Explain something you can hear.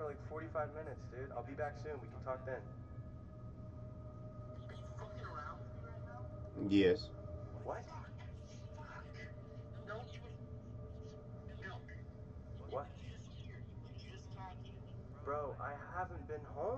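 A young man talks close to the microphone, with animated, mocking speech.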